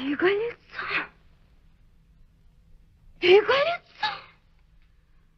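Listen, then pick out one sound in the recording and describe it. A young woman speaks close by in a startled, anxious voice.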